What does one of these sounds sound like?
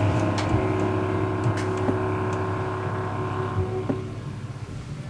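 A small band plays a long held closing chord.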